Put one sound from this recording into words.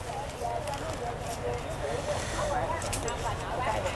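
A plastic bag crinkles as it is wrapped around a pot.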